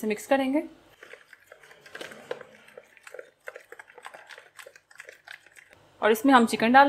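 A spoon scrapes and clinks against a plastic bowl while stirring a thick paste.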